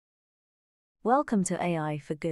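A young woman speaks clearly and calmly into a close microphone.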